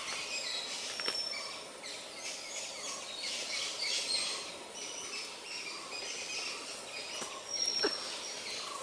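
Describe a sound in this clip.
Twigs snap sharply.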